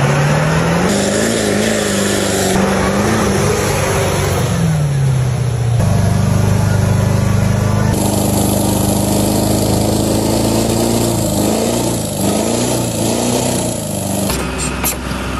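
A diesel pickup engine revs hard.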